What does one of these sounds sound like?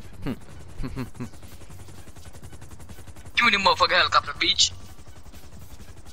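A helicopter rotor whirs steadily nearby.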